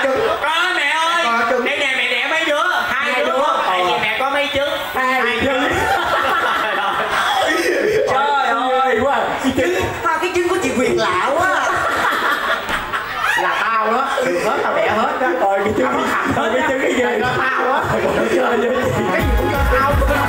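Several young women sing together into microphones through loudspeakers.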